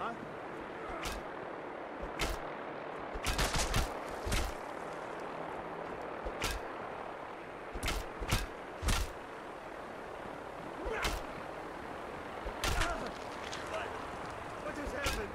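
Punches land with dull thuds in a fistfight.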